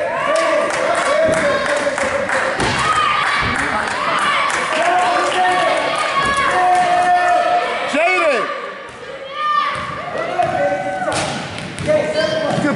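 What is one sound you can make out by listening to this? A basketball bounces on the floor in a large echoing hall.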